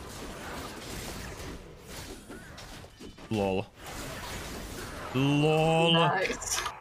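A young man speaks excitedly, close to a microphone.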